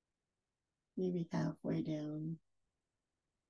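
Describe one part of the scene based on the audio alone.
A woman speaks calmly and briefly close to a microphone.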